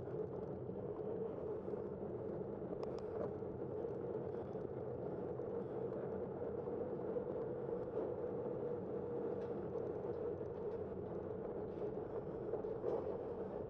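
Tyres hum steadily as a vehicle rolls along pavement.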